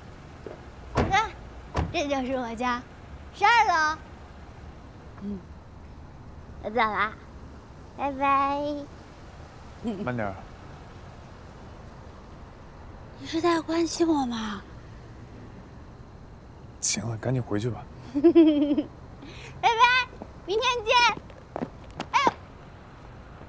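A young woman speaks cheerfully and playfully close by.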